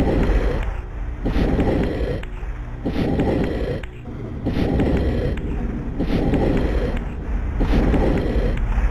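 A heavy stone block grinds and scrapes across a stone floor in repeated pushes.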